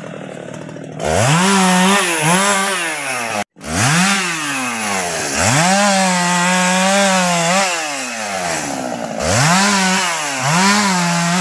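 A chainsaw engine revs loudly up and down, close by.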